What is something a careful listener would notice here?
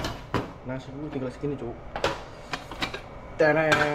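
A metal pot lid clinks as it is lifted off a pot.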